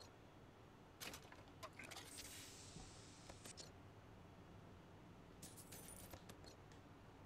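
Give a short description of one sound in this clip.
Short game pickup chimes and clicks sound as items are collected.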